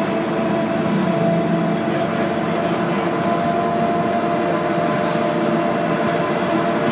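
A bus engine hums steadily while driving along a road.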